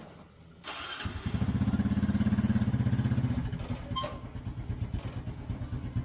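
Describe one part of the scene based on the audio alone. A motorbike engine starts and idles close by with a pulsing rumble.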